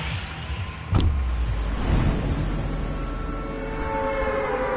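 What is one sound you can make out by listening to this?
Wind rushes loudly past a falling figure.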